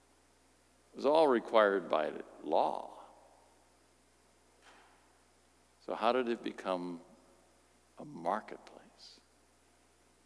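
A middle-aged man speaks calmly into a microphone in short phrases, with pauses between them, in a reverberant hall.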